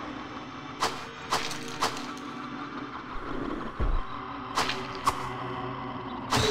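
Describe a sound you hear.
A sword swings and strikes in quick, sharp hits.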